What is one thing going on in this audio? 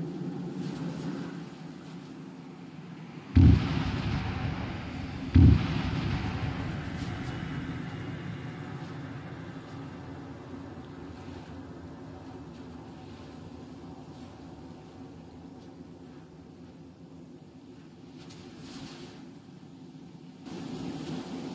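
Fires roar steadily on a ship's deck.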